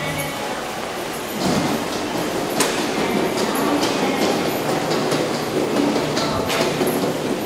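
Footsteps tap on a hard floor in an echoing passage.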